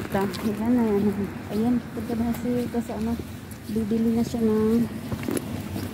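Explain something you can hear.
Footsteps walk on wet pavement.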